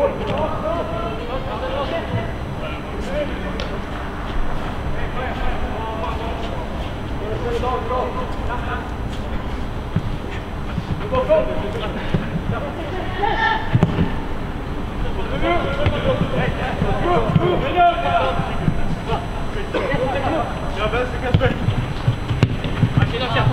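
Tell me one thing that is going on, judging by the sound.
Young men shout calls to each other across a large open stadium.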